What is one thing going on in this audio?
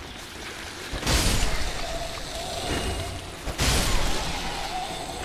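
Heavy sword blows land with loud crashing impacts.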